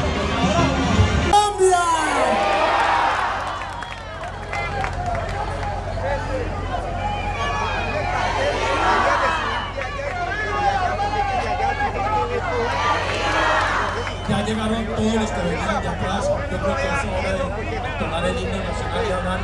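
A large outdoor crowd chants and cheers loudly.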